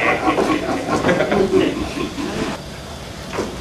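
A man speaks loudly on a stage, heard from a distance in a large room.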